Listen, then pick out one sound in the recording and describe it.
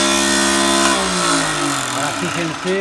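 A woodworking machine's motor slows down and winds to a stop.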